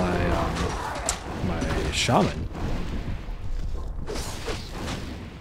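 A young man talks casually and close to a microphone.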